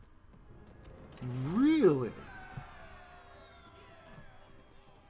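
Game sound effects chime and swell.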